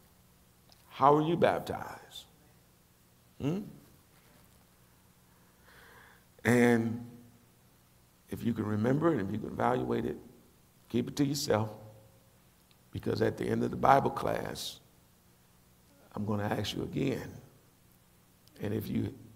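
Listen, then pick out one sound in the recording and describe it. A middle-aged man speaks calmly and deliberately into a microphone, with pauses between phrases.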